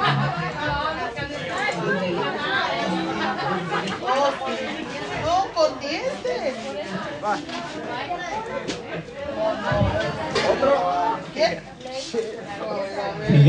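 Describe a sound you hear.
A crowd of young men and women chat and call out close by.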